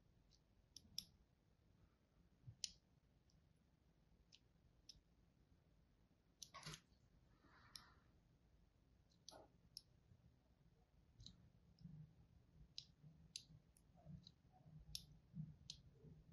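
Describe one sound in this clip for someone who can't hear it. A blade scrapes and carves into a bar of soap with soft crisp clicks.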